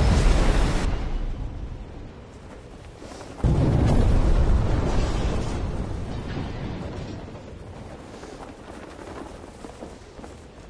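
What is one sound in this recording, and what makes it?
A parachute canopy flutters and flaps in the wind.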